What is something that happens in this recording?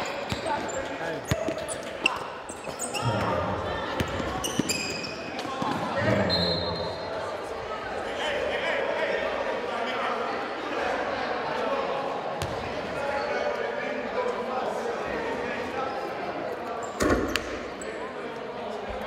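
Sneakers squeak sharply on a wooden court in a large echoing gym.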